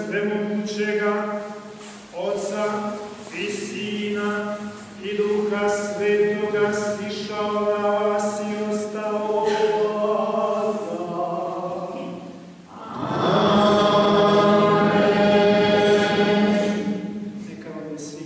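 An elderly man chants in a steady sung voice through a microphone, echoing in a large hall.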